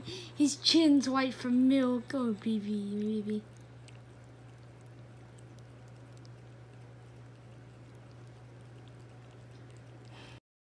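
A cat laps up milk.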